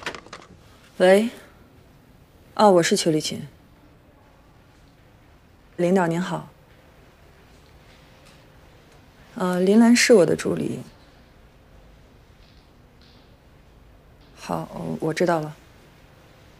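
A woman speaks calmly on a phone.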